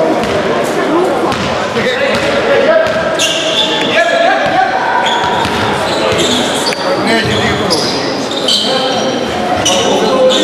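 Sneakers squeak sharply on a floor in a large echoing hall.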